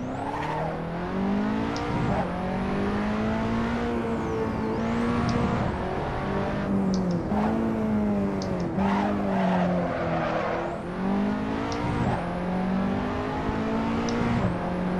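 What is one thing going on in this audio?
A racing car engine roars, rising and falling in pitch as it shifts gears.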